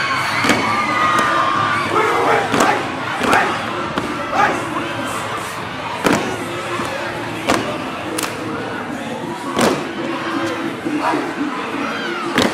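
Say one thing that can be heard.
A group of young men stomp and clap in unison, echoing in a large hall.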